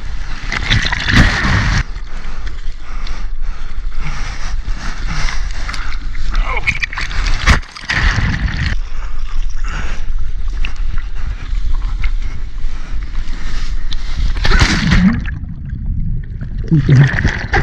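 Water gurgles and rushes as the microphone dips under.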